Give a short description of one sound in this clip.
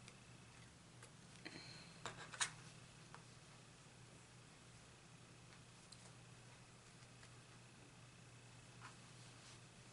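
Plastic stitch markers click softly as they are handled.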